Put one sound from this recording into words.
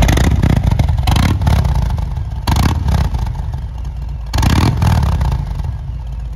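A motorcycle engine revs in short, sharp bursts.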